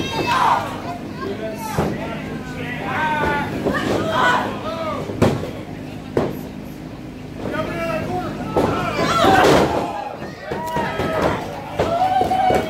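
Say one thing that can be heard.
A small crowd of fans shouts and cheers.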